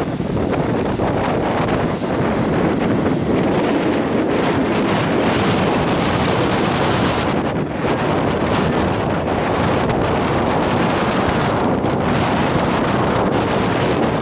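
Heavy surf crashes and roars steadily close by.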